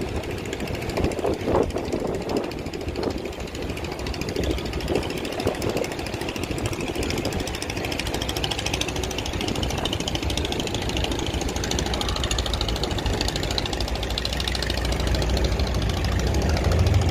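A boat engine chugs steadily nearby.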